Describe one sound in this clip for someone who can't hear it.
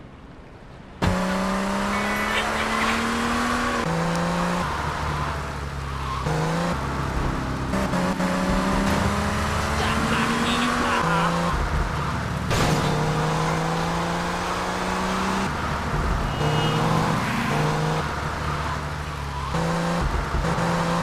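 A car engine roars and revs up through its gears.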